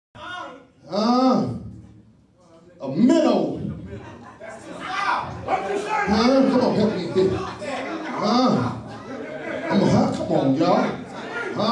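A man preaches with passion into a microphone, heard through loudspeakers in an echoing hall.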